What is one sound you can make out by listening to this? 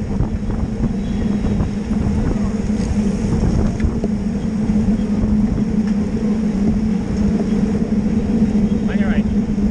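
Bicycle tyres hum and whir on pavement.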